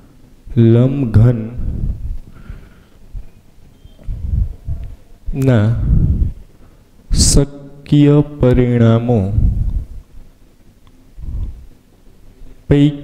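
A man speaks calmly, explaining in a lecturing tone.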